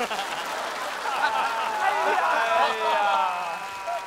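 A group of young men and women laugh loudly.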